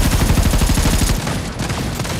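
An automatic rifle fires a rapid burst.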